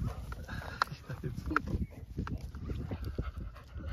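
Dogs run and scamper over grass close by.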